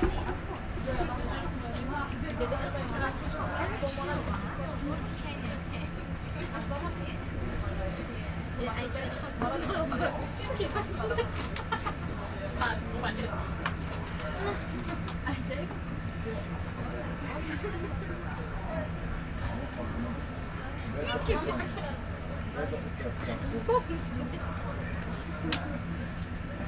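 A train hums steadily while standing at a platform.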